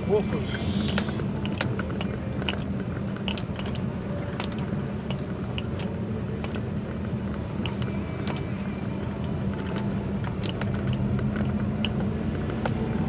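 A car's tyres rumble and rattle over cobblestones, heard from inside the car.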